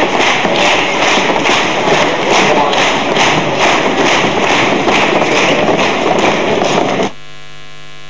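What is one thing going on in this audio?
A group of young women sing together on a stage.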